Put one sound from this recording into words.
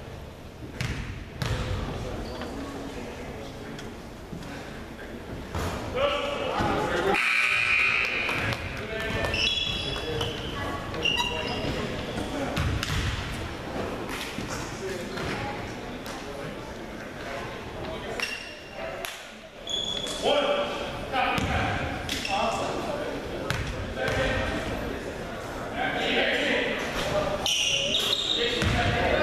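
Young men call out to one another in a large echoing gym.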